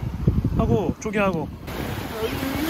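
A young child talks excitedly up close.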